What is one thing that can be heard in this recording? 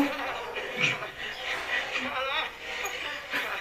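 Young men laugh.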